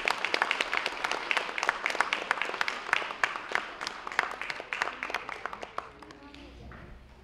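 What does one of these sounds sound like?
An audience claps its hands in applause, then the clapping dies away.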